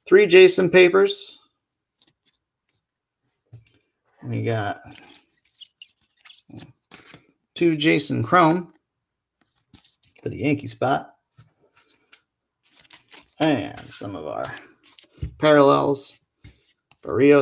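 Plastic card cases click and rustle as hands shuffle them.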